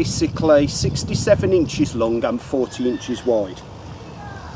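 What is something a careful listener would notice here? A man speaks calmly nearby outdoors.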